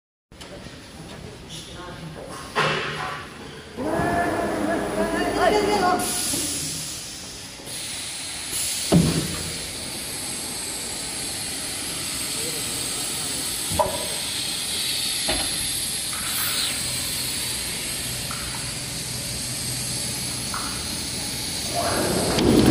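Woodworking machinery hums and whirs steadily.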